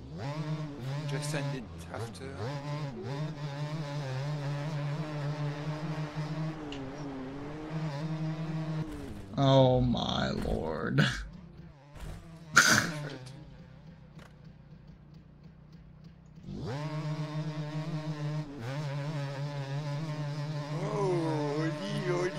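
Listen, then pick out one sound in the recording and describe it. A motorbike engine hums steadily and revs up and down.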